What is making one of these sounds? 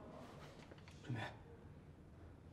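A young woman speaks weakly and in pain.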